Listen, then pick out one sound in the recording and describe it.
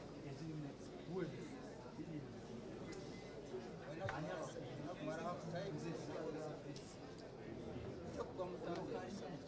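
Men and women chatter and call out in a lively crowd.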